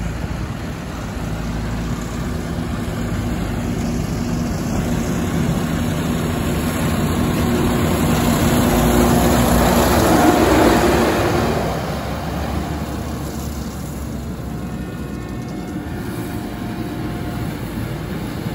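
A harvesting machine drones and rattles, growing louder as it passes close by and then fading.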